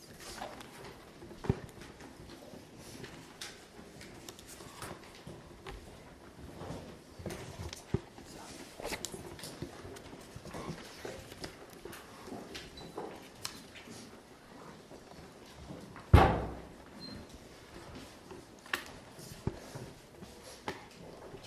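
A woman talks calmly to children.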